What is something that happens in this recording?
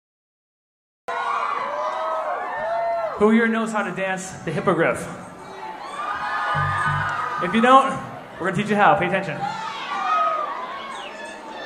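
A crowd cheers and shouts.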